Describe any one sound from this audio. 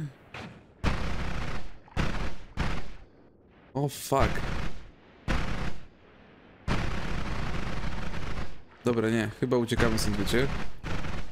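A laser weapon fires in loud, hissing bursts.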